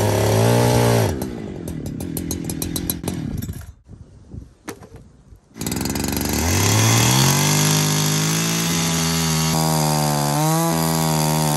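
A chainsaw engine revs loudly.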